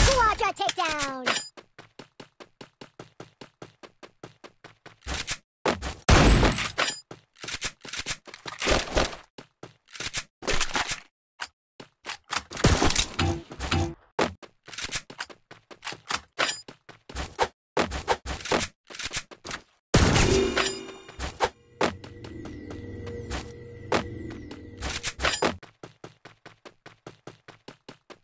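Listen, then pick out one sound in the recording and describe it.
Footsteps patter quickly and evenly as a game character runs.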